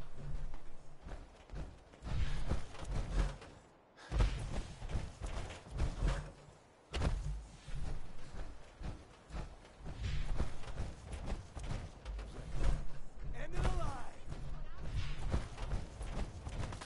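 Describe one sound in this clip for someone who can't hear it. Heavy metallic footsteps thud steadily on hard ground.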